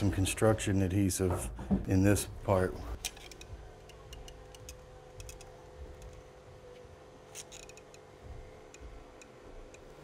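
A caulking gun clicks as its trigger is squeezed.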